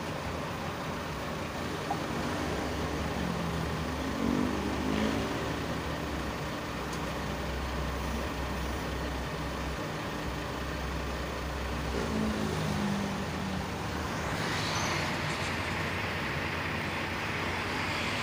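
Metal pots and utensils clink softly.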